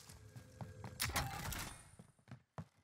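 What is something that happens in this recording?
A metal crate lid clanks open.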